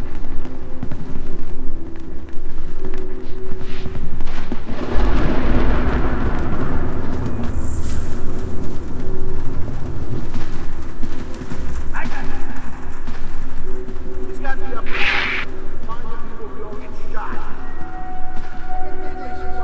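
Soft footsteps shuffle on a hard floor.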